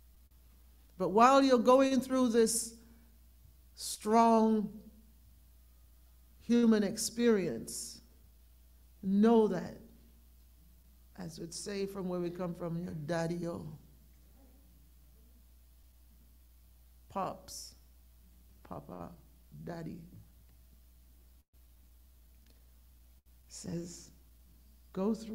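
A middle-aged woman speaks slowly and with feeling into a microphone, heard through an online call.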